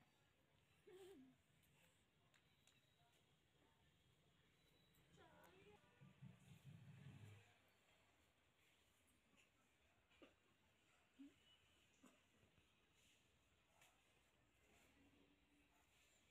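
Fingers rustle softly through hair close by.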